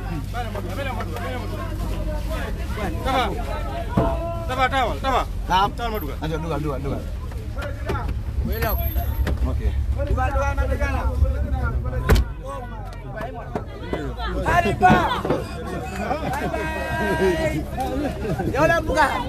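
Several young men talk and shout close by, outdoors.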